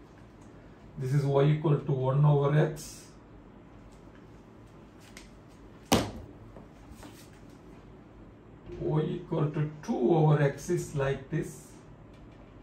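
An older man speaks calmly and explains, close by.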